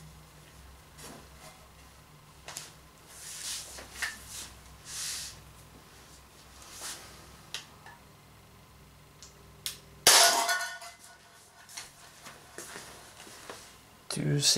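Plastic parts click and rattle as a pistol is handled and cocked.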